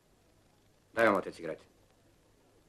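A man speaks loudly and firmly nearby.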